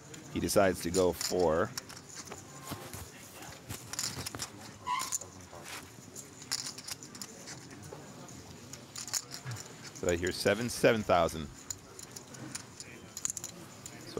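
Poker chips click together in a hand.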